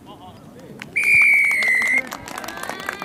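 A referee blows a long whistle.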